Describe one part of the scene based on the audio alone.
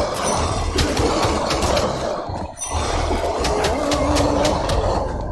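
Magic effects whoosh and crackle.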